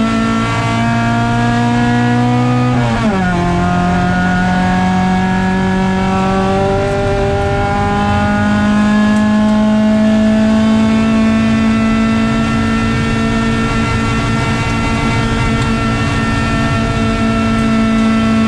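A rally car engine roars loudly, dropping in pitch at a gear change and then climbing steadily.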